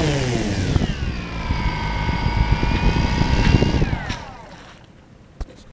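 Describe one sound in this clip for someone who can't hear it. A man's footsteps swish through grass nearby.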